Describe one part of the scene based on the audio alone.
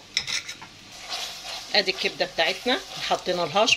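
A spoon scrapes and stirs food in a metal pan.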